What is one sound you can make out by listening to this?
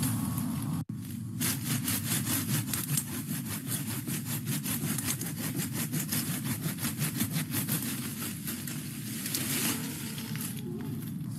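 A hand saw rasps back and forth through a woody stem.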